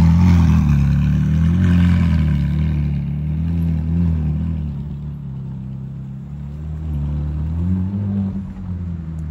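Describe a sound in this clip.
A sports car engine rumbles loudly at low speed as the car pulls away.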